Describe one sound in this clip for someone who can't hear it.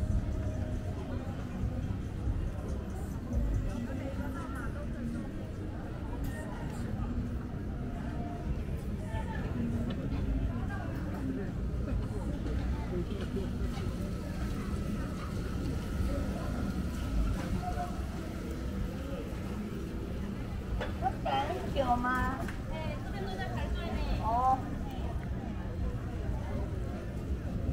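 A crowd chatters and murmurs all around outdoors.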